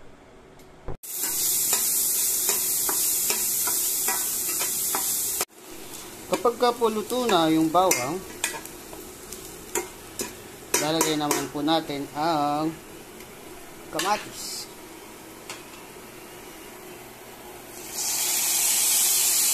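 Garlic sizzles and crackles in hot oil in a pan.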